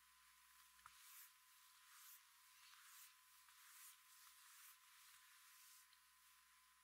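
A felt eraser swishes in long strokes across a chalkboard.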